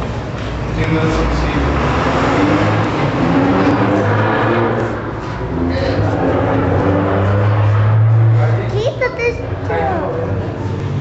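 Several young men chatter and talk over one another close by.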